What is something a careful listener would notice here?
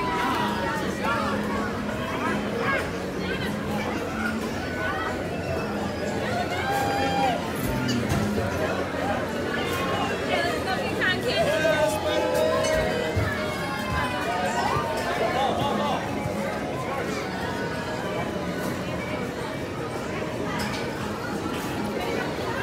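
Children's voices call out and squeal nearby.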